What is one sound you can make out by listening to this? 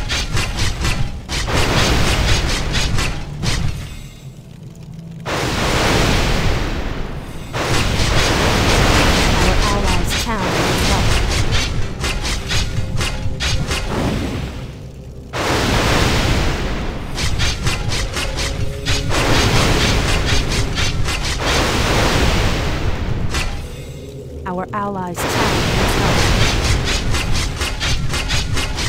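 Electric bolts crackle and zap in a fight.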